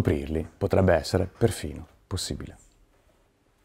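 A middle-aged man speaks calmly into a clip-on microphone, close by.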